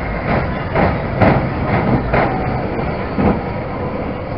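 A small ride train rumbles past on its track.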